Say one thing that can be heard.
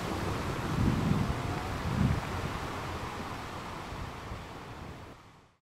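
Sea water ripples and washes softly.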